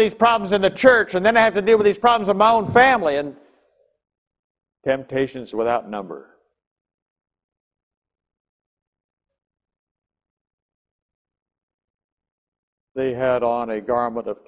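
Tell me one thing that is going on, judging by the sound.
An elderly man speaks with animation into a microphone, with pauses.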